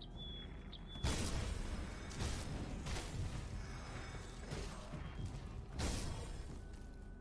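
Fiery magic blasts burst with loud whooshing booms.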